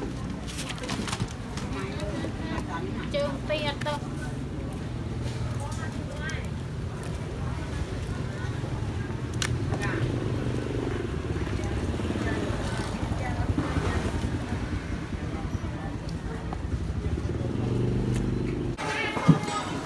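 Fish flop and a net rustles.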